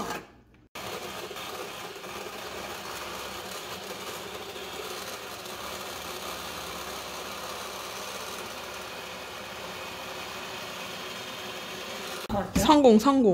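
An electric hand mixer whirs steadily.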